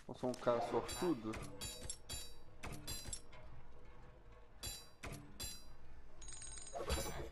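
Short game menu chimes sound as options change.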